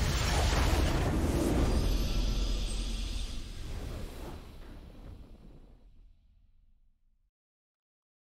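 A triumphant fanfare swells and then slowly fades away.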